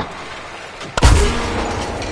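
A blast booms nearby.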